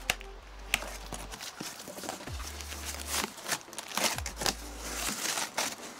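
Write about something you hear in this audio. Cardboard flaps creak and rustle as they are pulled open.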